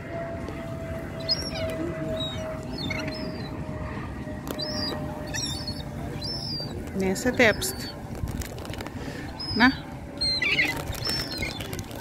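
Gulls' wings flap as they scuffle on the sand.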